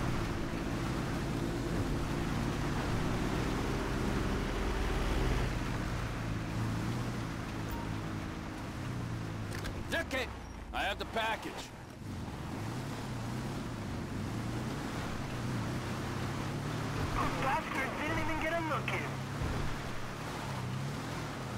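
A buggy engine drones and revs steadily.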